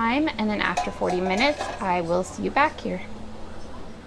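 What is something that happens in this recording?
A metal lid clanks onto a pot.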